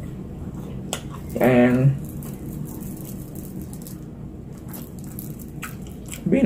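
A woman chews food with her mouth open.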